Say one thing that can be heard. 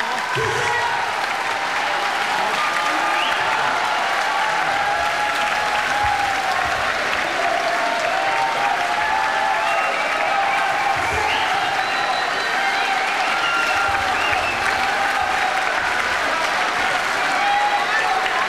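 A large crowd claps along.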